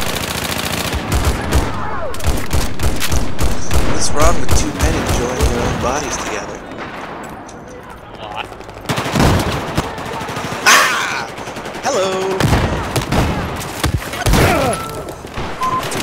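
Rifle shots crack in rapid bursts.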